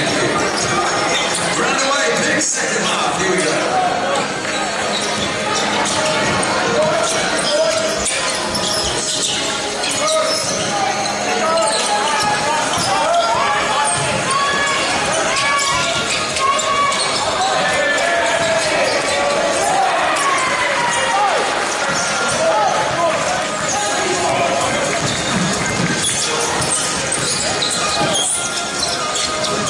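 A crowd murmurs and calls out in an echoing hall.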